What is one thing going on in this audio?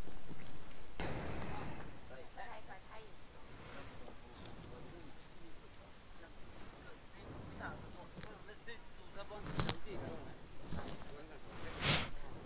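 Adults talk quietly nearby.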